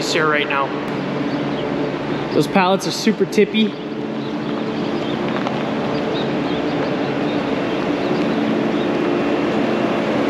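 A forklift engine hums and grows louder as it approaches.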